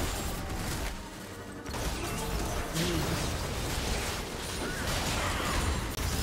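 Game spell effects crackle and burst in a busy fight.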